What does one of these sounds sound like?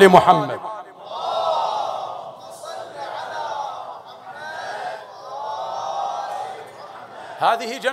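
A man weeps and sobs into a microphone.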